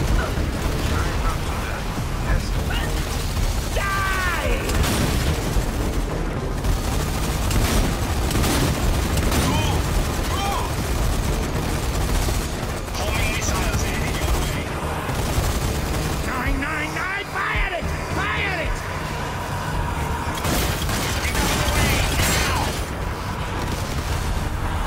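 Rifle shots crack.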